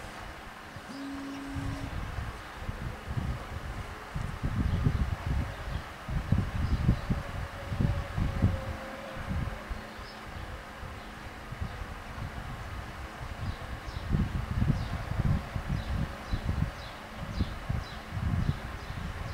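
Fingertips tap and slide on a tablet's glass touchscreen.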